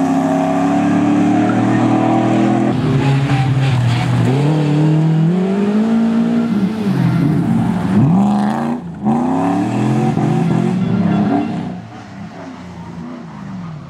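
Rally car engines roar loudly and rev up and down as the cars speed past.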